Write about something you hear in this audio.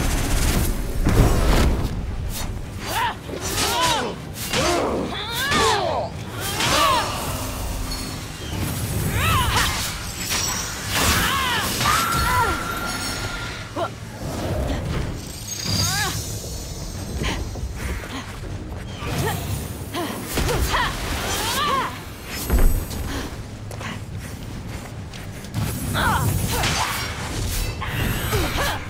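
Small creatures screech and chirp.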